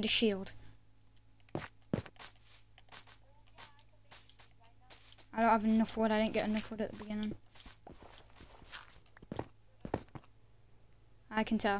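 Footsteps crunch softly on grass and stone.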